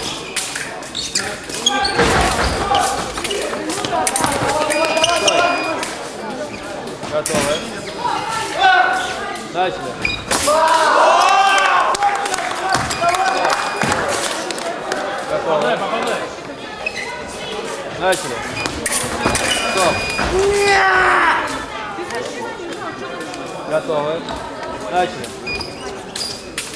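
Voices of a crowd echo in a large hall.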